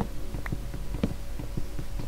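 Wooden blocks knock and crack as they are broken.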